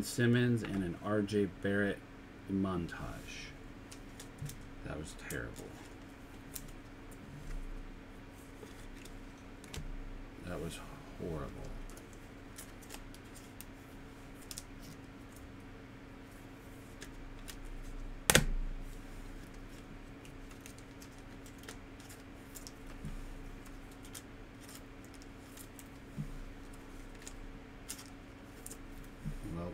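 Trading cards in plastic sleeves click and rustle as hands shuffle through them.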